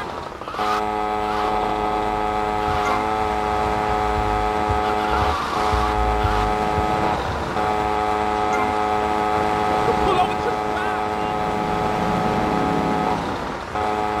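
A motor scooter engine hums steadily as it rides along.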